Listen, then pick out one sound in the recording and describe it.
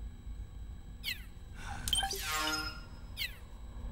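Electronic menu sounds whoosh and chime.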